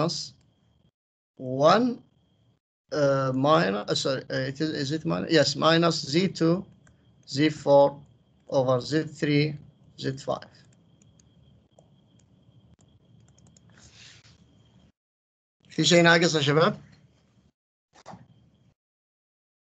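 A man explains calmly through a microphone, in short bursts with pauses.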